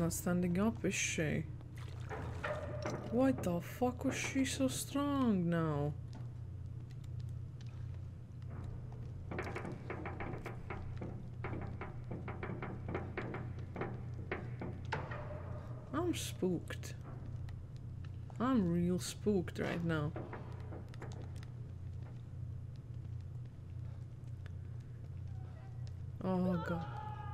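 A young woman talks with animation close to a headset microphone.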